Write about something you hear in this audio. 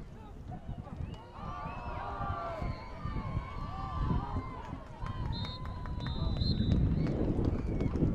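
Young men shout and cheer outdoors at a distance.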